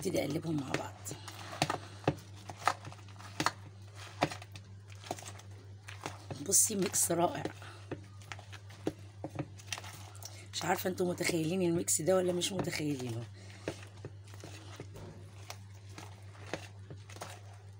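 A thick, creamy mixture squelches softly as it is stirred.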